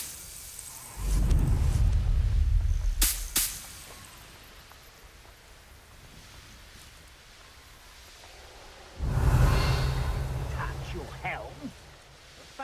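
Wind rushes past loudly in short bursts.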